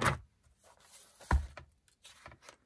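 Book pages flip.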